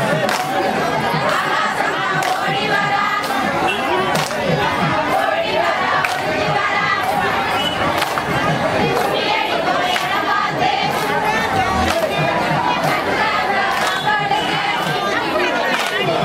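A crowd of women sing together loudly.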